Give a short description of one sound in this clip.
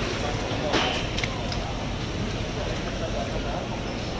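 Rubber boots shuffle and splash on a wet floor.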